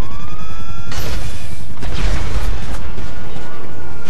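A helicopter explodes with a loud blast.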